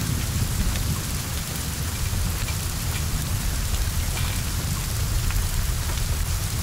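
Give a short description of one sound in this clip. Heavy rain pours steadily.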